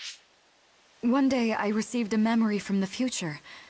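A woman speaks calmly and at length.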